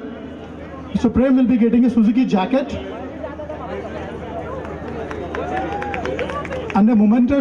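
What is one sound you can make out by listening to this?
A man speaks energetically into a microphone, heard loudly over loudspeakers outdoors.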